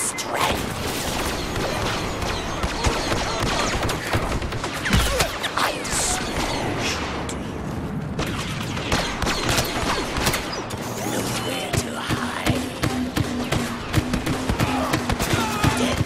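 Sparks crackle as shots hit a wall nearby.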